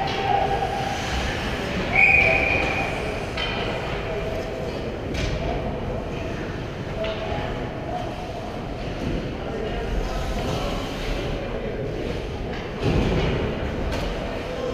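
Skates scrape and hiss across ice in a large, echoing rink.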